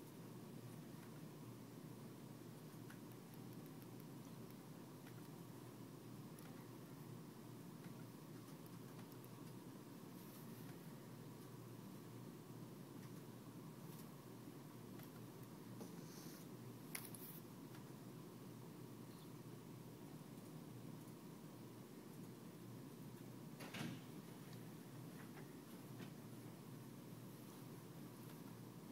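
A laptop fan whirs quietly and steadily.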